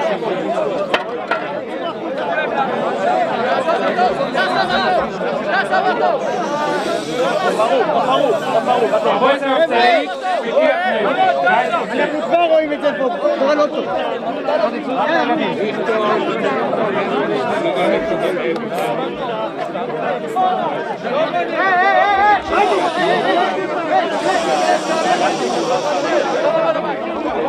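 A crowd of men chant and sing together loudly, close by.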